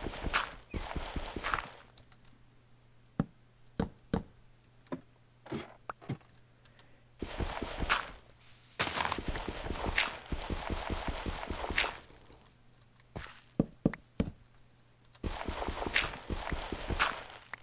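A shovel digs into dirt with soft crunching thuds.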